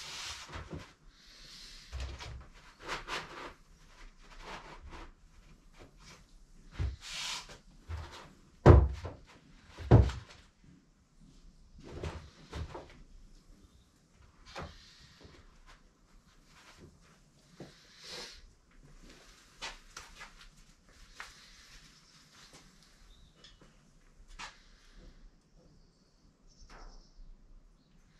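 Hands knock and rub against a wooden board, close by.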